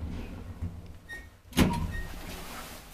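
Lift doors slide open with a thud.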